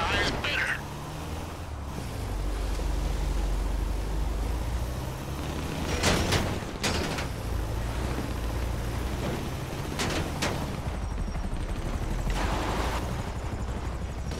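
A van engine rumbles steadily as it drives over rough ground.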